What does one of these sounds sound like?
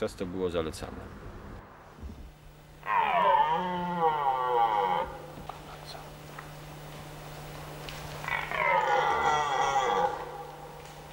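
A red deer stag bellows loudly in long, rising and falling roars.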